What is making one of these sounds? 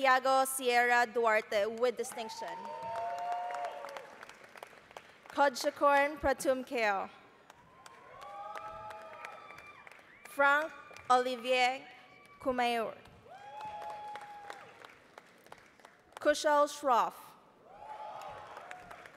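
People applaud in a large hall.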